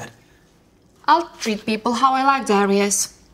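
A young woman answers dismissively close by.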